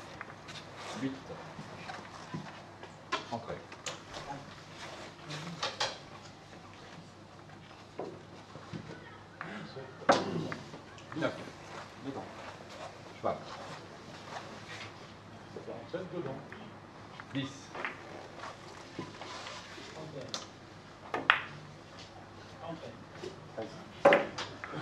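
A cue strikes a billiard ball with a short tap.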